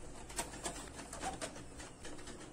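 A plastic tray clicks into place.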